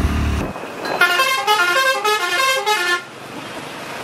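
A vehicle horn plays a short melodic tune.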